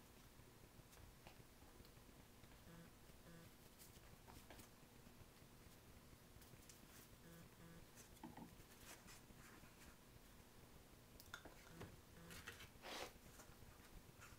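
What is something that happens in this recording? Hands rustle and tap on stiff plastic sheeting.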